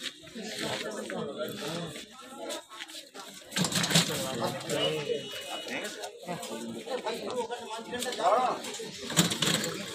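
A metal stretcher trolley rattles as it is pushed.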